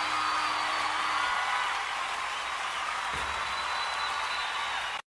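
A live band plays music.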